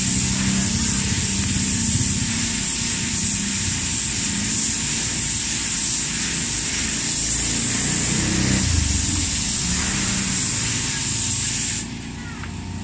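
A compressed-air spray gun hisses as it sprays paint.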